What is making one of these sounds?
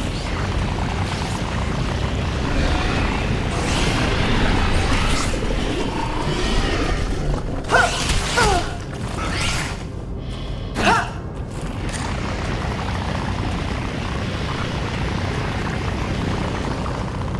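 A beam weapon hums and crackles steadily as it fires.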